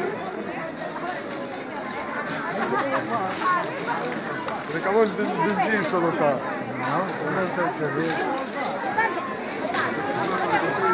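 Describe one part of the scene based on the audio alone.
A large outdoor crowd murmurs and chatters all around.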